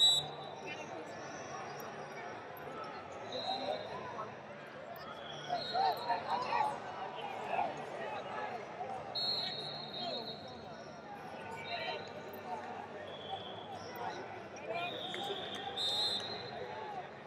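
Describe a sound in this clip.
Shoes squeak sharply on a mat.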